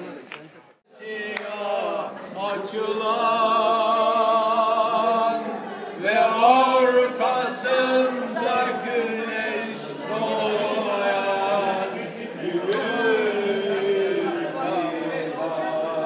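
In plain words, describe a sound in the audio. An elderly man sings loudly and with vibrato, outdoors.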